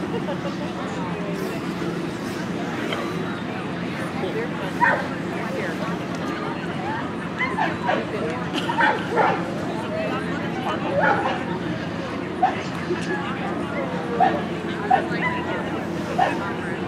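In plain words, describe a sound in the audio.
A crowd of men and women chatter at a distance outdoors.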